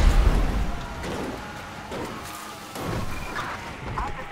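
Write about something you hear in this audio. Tyres rumble and crunch over rough dirt.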